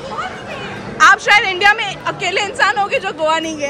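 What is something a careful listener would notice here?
A woman speaks loudly and animatedly close by.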